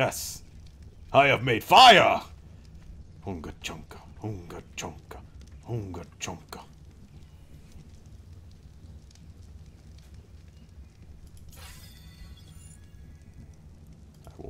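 A campfire crackles and roars steadily.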